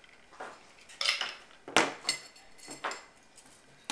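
A spoon stirs and clinks against a glass.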